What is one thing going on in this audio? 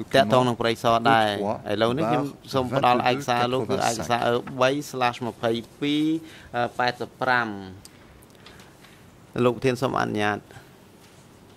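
A middle-aged man reads out calmly into a microphone.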